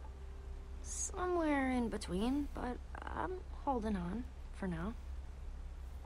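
A young woman answers calmly and wearily.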